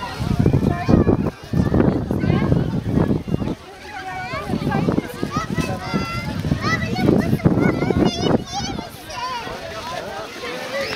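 Children shout and chatter outdoors in a crowd.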